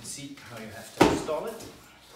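A cardboard box thumps onto a surface.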